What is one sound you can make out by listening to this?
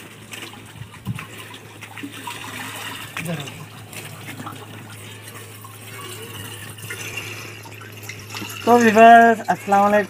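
Water pours from a pipe and splashes.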